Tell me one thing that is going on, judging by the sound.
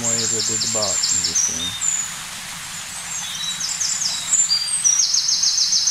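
Birds chirp and trill rapidly nearby.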